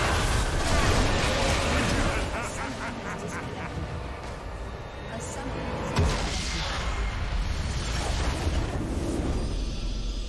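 Video game battle sound effects clash and burst loudly.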